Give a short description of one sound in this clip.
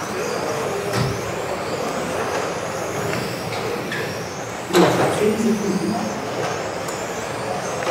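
Small electric model cars whine as they race around a large echoing hall.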